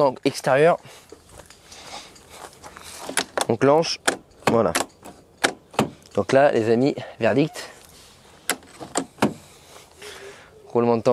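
A car door latch clicks and clunks.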